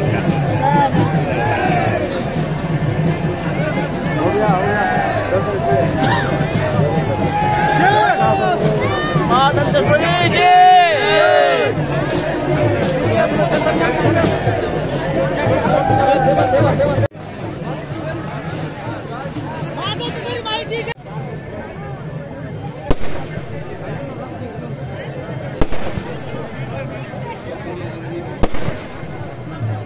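A large crowd chatters and shouts outdoors.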